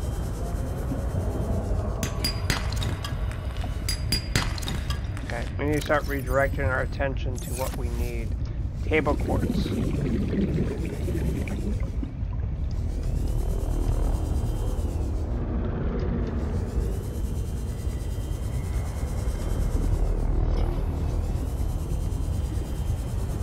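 A small underwater vehicle's motor hums low and steady.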